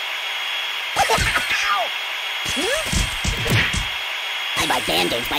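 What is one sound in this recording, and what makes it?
A blade strikes a stuffed doll with sharp ripping hits.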